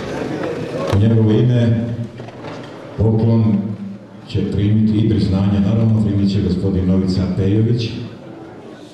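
A man speaks loudly through a loudspeaker in a large hall.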